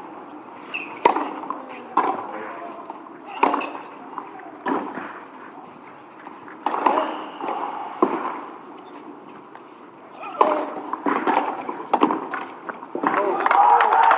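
A tennis ball is struck back and forth with rackets, with sharp pops.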